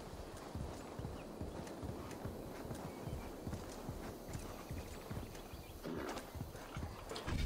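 Heavy paws thud rapidly on soft ground as a large animal runs.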